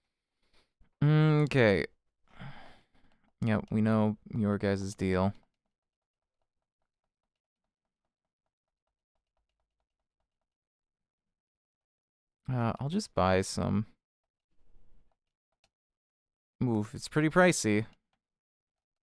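A man speaks with animation, close to a microphone, in short bursts.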